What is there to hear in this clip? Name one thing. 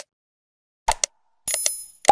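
A mouse clicks sharply.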